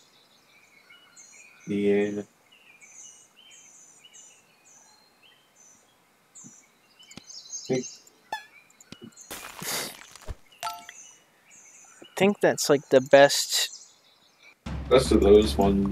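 Short playful game sound effects chirp and pop.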